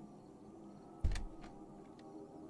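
A wooden door swings shut with a heavy thud.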